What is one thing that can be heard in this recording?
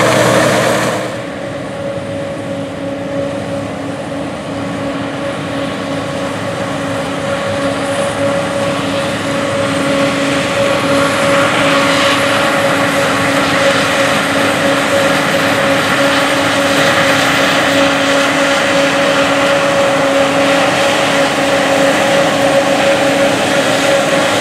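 Combine harvesters hum and whine as they cut a crop, growing louder as they approach.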